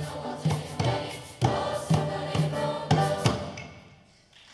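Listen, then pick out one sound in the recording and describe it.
Hand drums beat in strong, sharp strokes.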